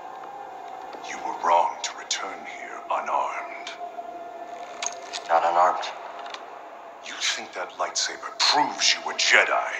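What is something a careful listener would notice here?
A man with a deep voice speaks slowly and menacingly.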